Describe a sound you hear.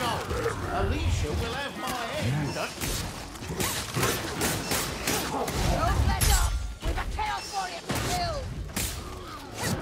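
Swords slash and strike with sharp, wet thuds.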